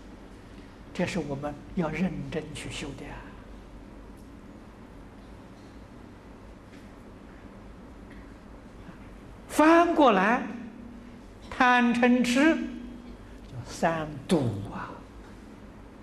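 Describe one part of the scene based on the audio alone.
An elderly man speaks calmly and with expression into a nearby microphone, pausing between phrases.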